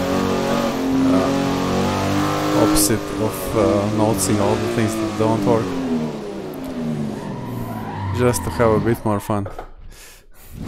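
A racing car engine roars and changes pitch through the gears.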